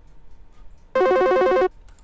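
An electronic phone ringtone rings.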